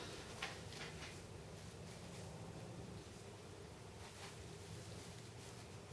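A sheet of paper rustles as it is unrolled.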